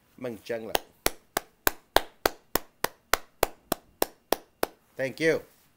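A man claps his hands quickly and evenly.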